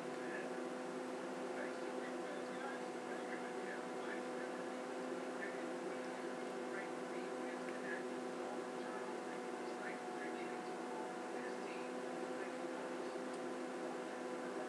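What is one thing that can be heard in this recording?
Hands rustle softly through thick hair close by.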